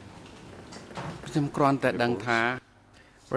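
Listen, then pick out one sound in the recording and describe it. A younger man speaks calmly into a microphone.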